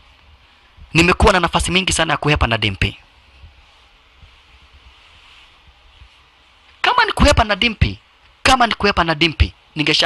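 A man speaks forcefully, close by.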